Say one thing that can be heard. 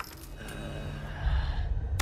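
An elderly man snarls menacingly.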